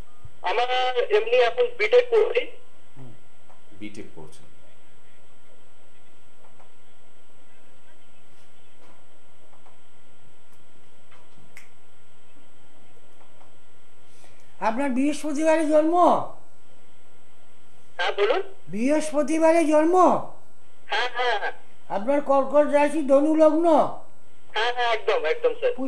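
A middle-aged man speaks steadily into a microphone, with long pauses.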